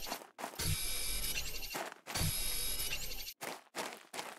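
A scanning tool hums with a buzzing electronic tone.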